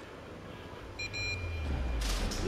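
A parking machine beeps in short electronic tones.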